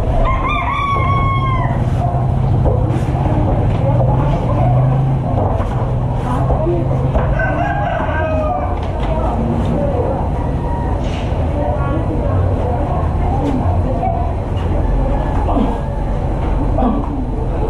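Bodies thump and shuffle on a padded mat.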